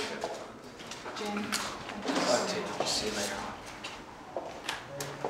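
Several women chat.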